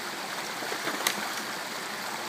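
A wooden stick knocks sharply against rock.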